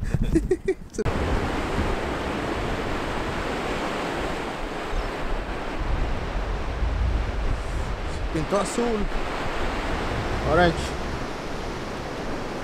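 Waves wash onto a beach.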